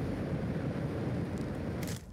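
A campfire crackles softly in the distance.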